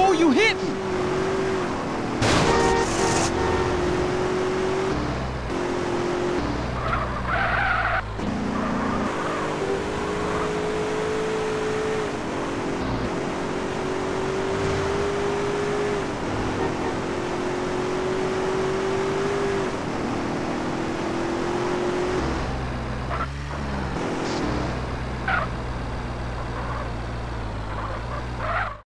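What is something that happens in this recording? A car engine revs and drones steadily.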